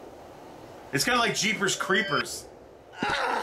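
A middle-aged man speaks briefly and casually, close to a microphone.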